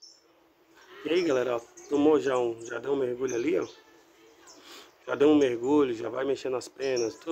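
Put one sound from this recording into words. A small bird sings with high chirps and trills.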